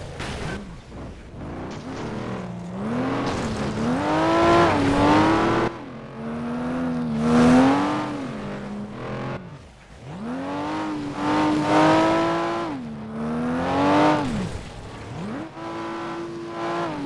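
A car engine revs hard, rising and falling in pitch as gears shift.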